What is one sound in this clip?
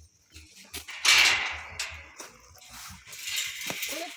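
A metal gate scrapes and rattles as it swings open.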